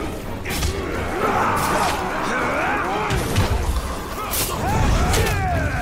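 Creatures grunt and snarl in a fight.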